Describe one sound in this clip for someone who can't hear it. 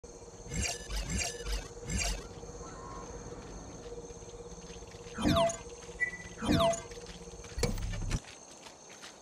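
Short electronic menu beeps and clicks sound several times.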